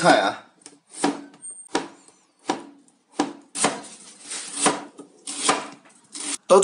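A knife chops through vegetables on a cutting board with sharp, steady knocks.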